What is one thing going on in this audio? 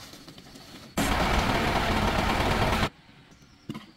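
A truck engine roars loudly.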